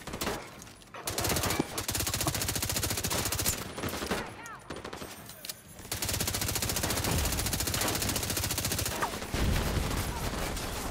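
Rapid automatic gunfire rattles in fast bursts.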